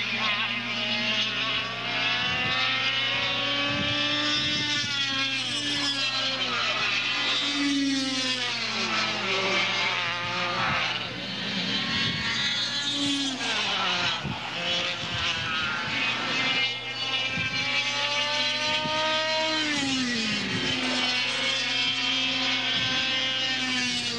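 Small kart engines whine loudly, rising and falling in pitch as they speed past and shift.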